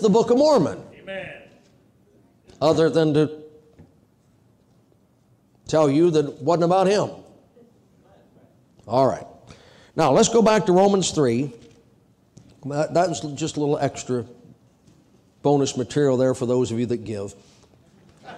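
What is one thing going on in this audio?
A middle-aged man speaks emphatically into a microphone in short bursts, with pauses between phrases.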